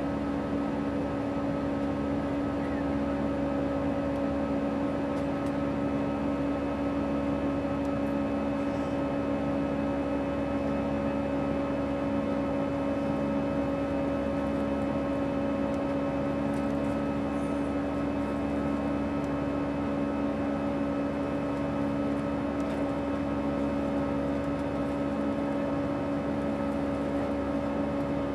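A jet engine drones steadily with a constant low hum, heard from inside an airliner cabin.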